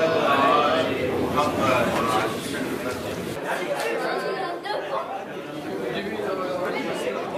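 A crowd of men and boys murmur and talk.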